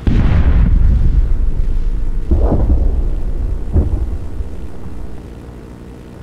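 Heavy gunfire rattles in a rapid burst.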